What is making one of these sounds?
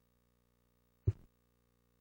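A middle-aged man coughs once.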